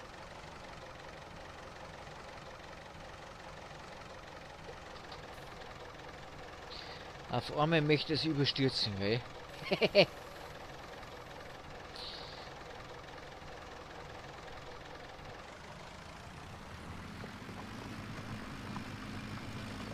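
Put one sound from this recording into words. A tractor engine rumbles low and grows louder toward the end.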